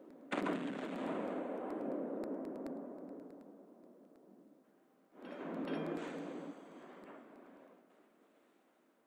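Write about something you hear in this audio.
Heavy naval guns fire with deep booming blasts that rumble away.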